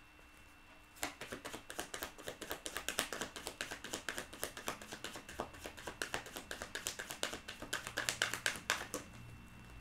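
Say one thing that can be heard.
Playing cards are shuffled rapidly with quick flicking clicks.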